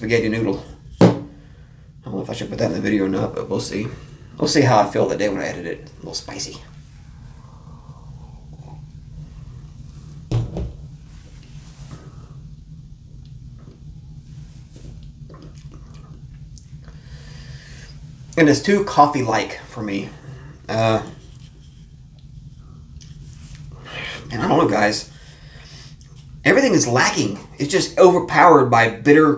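A man talks casually and close by.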